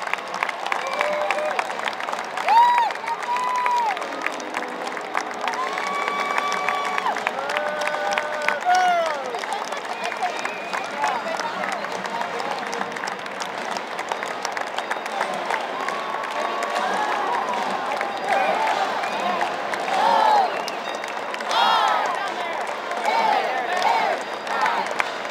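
A marching band plays brass music in a large echoing stadium.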